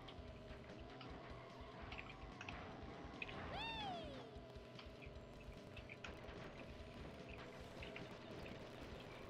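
A video game kart engine hums steadily.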